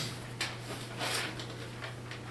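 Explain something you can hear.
Chalk scrapes on a board.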